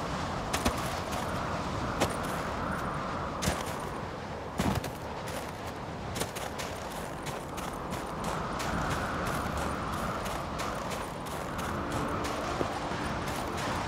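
Boots crunch on snow with each step.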